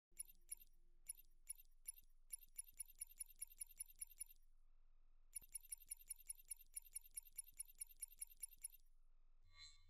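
Menu selection ticks click quickly in a steady run.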